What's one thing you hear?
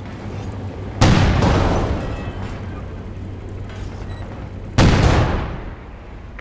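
Heavy explosions boom.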